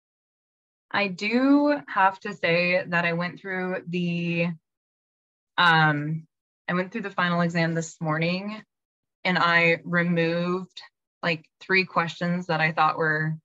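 A young woman speaks casually through an online call.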